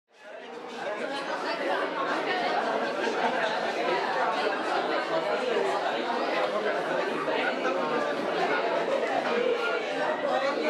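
A crowd of men and women chatter and murmur in a lively echoing room.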